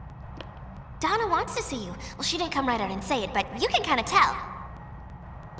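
A young woman speaks warmly and with animation.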